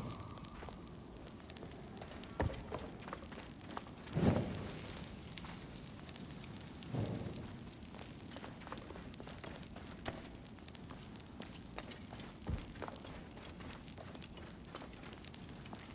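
A torch flame crackles and hisses.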